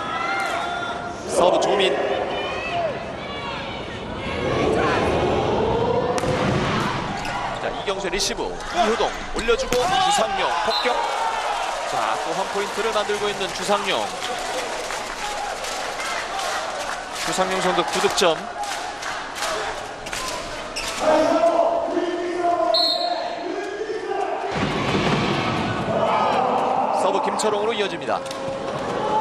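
A large crowd cheers loudly in an echoing hall.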